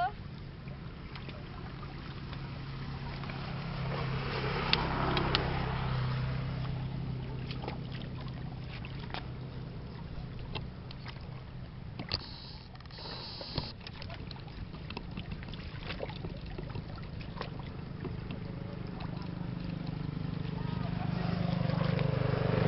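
Water splashes as people wade through a shallow ditch.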